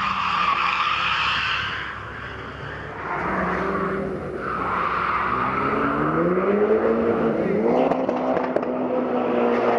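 A rally car engine roars and revs hard close by.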